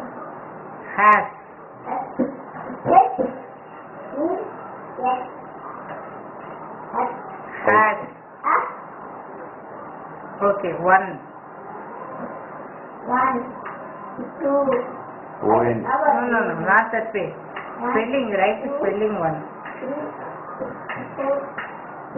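A young boy reads out words clearly, close by.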